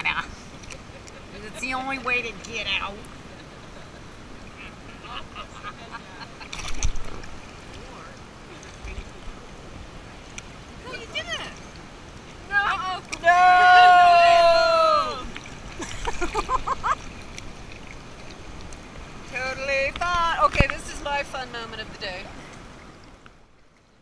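Water laps and splashes softly.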